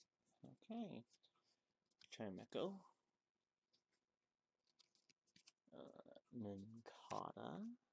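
Trading cards rustle softly between fingers.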